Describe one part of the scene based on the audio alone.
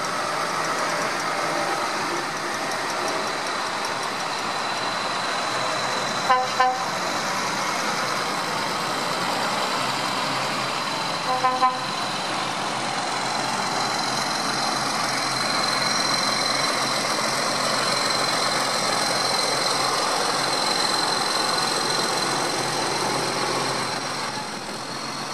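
Tractor engines rumble loudly as tractors drive past one after another.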